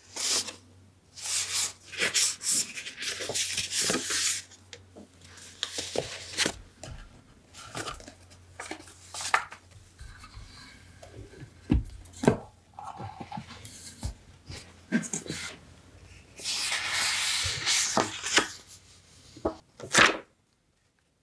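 Paper cards rustle and shuffle between hands.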